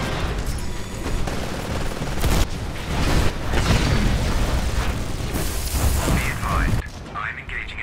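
Heavy gunfire rattles in rapid bursts.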